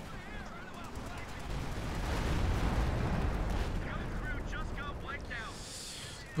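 Explosions rumble and boom in a battle.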